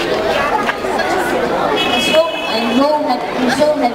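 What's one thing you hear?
A boy speaks clearly into a microphone, heard through a loudspeaker.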